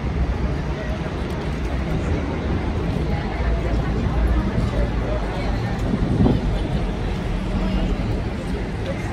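A crowd of people chatter in the open air.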